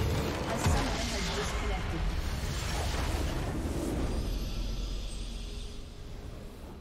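A massive explosion booms and crumbles into rumbling debris.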